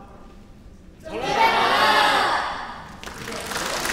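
A group of men and women shout together loudly and cheerfully.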